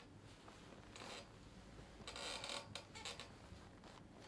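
Silk fabric rustles as it is adjusted.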